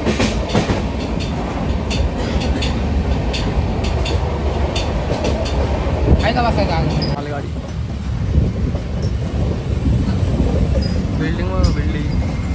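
A train rumbles along steadily with loud wheel clatter.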